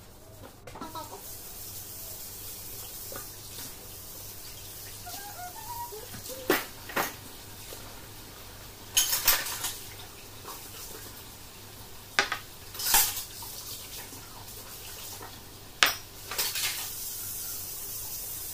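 Water runs from a tap.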